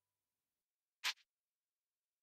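A short game menu chime sounds.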